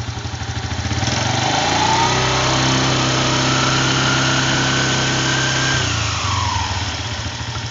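A small engine revs up, holds high, then drops back to idle.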